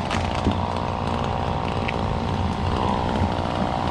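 A tree branch crashes down through leafy branches.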